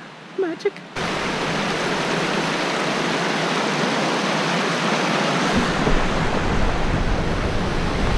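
A stream rushes loudly over rocks nearby.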